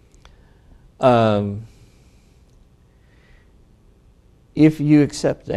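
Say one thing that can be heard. An older man speaks calmly and slowly into a microphone, with pauses.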